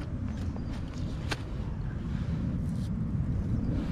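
A piece of raw meat slaps softly into a pan.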